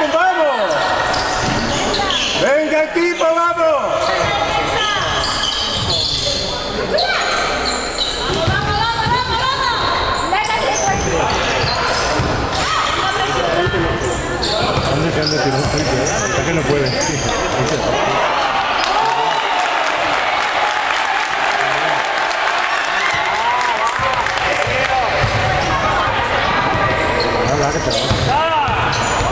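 Voices of players and spectators echo through a large hall.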